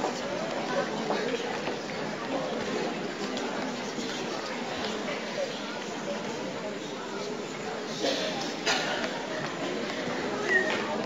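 Young men murmur and talk quietly among themselves in a large, echoing hall.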